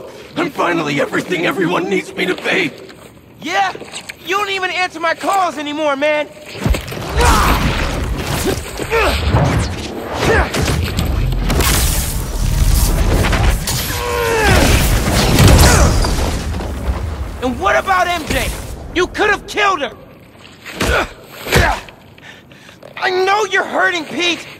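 A young man speaks urgently and emotionally, close by.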